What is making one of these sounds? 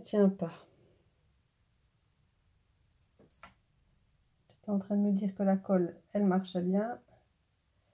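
Paper rustles softly as fingers handle a small paper flower.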